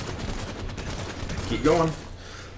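Gunfire crackles rapidly.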